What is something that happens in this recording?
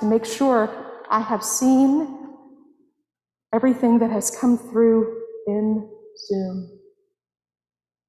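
A woman sings slowly and clearly in an echoing hall.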